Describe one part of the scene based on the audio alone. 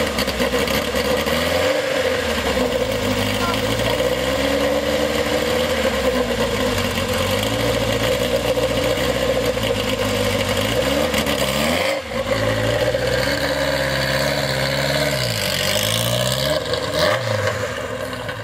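A car engine revs up and down again and again.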